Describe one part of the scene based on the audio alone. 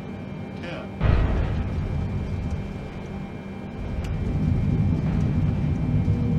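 Landing wheels thump onto a runway and rumble.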